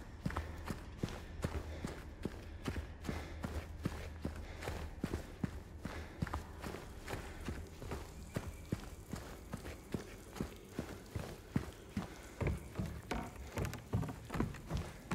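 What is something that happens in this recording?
Footsteps tap steadily on a hard floor, echoing faintly.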